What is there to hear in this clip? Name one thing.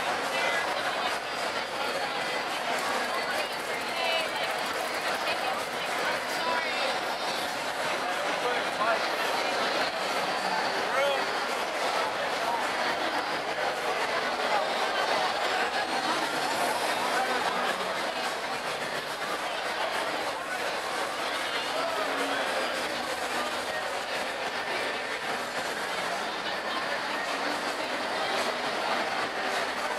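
A large crowd chatters and talks loudly outdoors.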